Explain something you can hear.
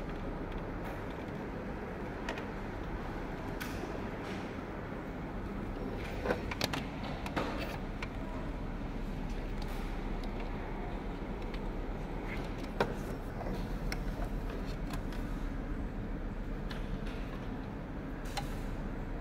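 Plastic and metal parts click and rattle as hands handle a machine's insides.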